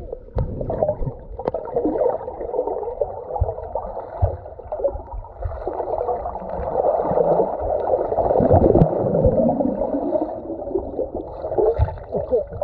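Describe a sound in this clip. Bubbles gurgle and rush underwater as a swimmer kicks.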